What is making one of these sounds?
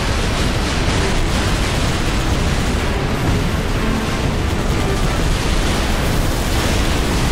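A vehicle engine roars steadily.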